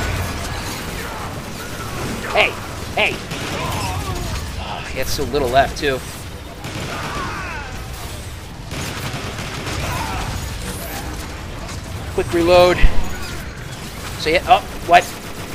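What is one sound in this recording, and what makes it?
Robots fire rapid bursts of laser gunfire.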